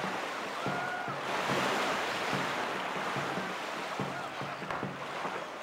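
Water rushes and splashes steadily.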